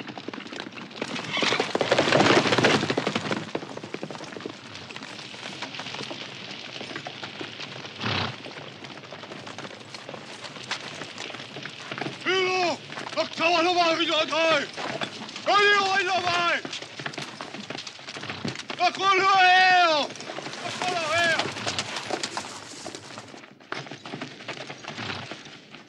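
Horses gallop, hooves pounding on dirt.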